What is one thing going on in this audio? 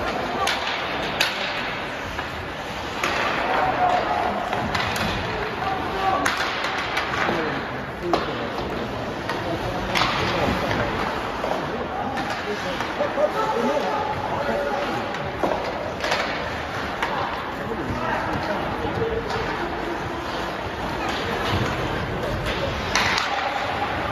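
Hockey sticks clack sharply against the puck and the ice.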